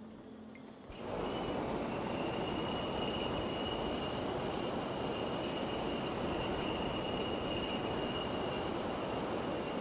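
A balloon's burner roars steadily.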